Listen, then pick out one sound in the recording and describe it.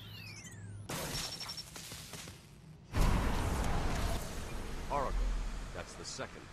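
Electric sparks crackle and burst loudly.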